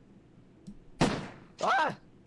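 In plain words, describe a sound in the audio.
A metal magazine knocks against a wooden table.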